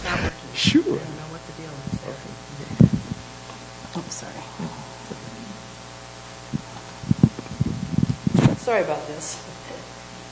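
A clip-on microphone knocks and rustles against clothing, close up.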